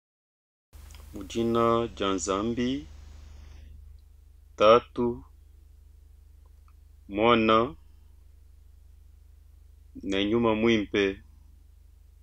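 A man speaks calmly and slowly through a microphone, in short phrases with pauses.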